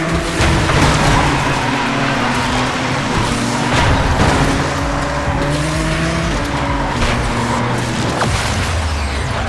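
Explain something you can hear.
A car crashes loudly into another car.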